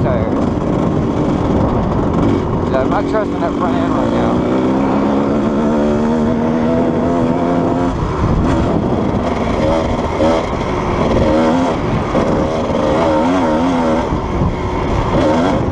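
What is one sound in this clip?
Wind buffets loudly against the rider.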